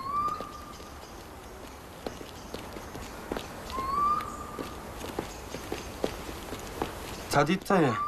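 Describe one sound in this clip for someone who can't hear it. Footsteps walk along a paved road outdoors.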